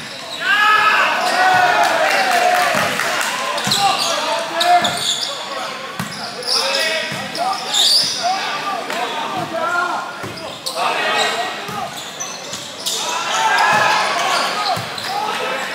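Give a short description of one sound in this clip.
A crowd of young men shout and cheer loudly in a large echoing hall.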